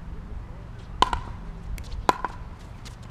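Tennis racquets strike a ball with sharp pops outdoors.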